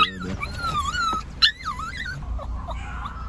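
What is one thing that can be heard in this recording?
A small dog whines close by in high, wavering cries.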